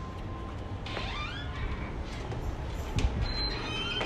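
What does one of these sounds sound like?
A door opens and swings shut.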